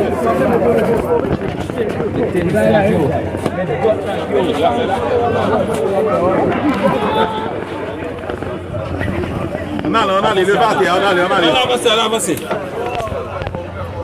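A crowd of men talk and shout over one another close by, outdoors.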